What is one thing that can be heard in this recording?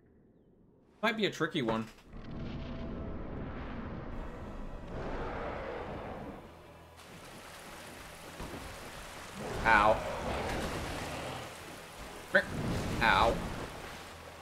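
A young man speaks animatedly into a close microphone.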